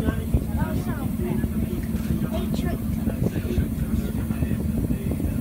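Water rumbles low and muffled, heard from underwater.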